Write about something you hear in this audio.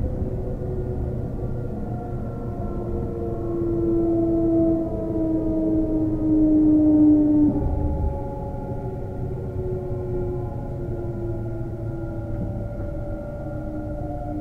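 An electric train's motor whines steadily, slowly falling in pitch.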